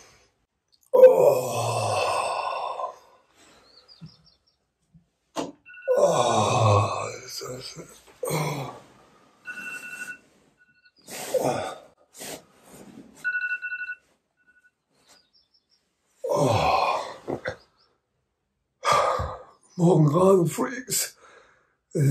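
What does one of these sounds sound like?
A middle-aged man speaks close by, groggily and with animation.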